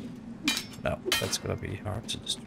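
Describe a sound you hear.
A sword strikes with sharp, heavy hits.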